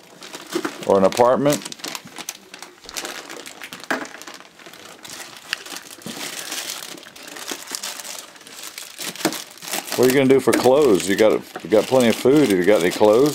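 Snack bags crinkle and rustle as they are handled.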